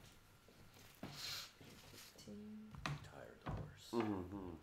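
Game pieces clack on a wooden table.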